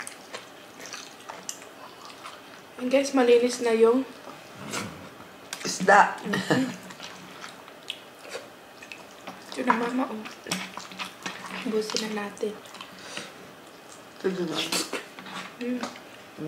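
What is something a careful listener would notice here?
A woman chews and smacks her lips close to a microphone.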